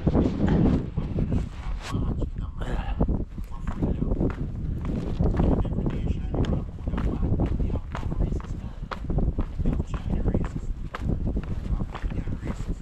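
Footsteps crunch on dry leaves and twigs.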